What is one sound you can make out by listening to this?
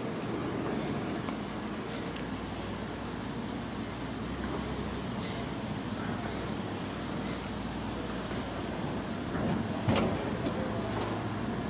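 A plastic rocker shell rolls and scrapes on a concrete sidewalk.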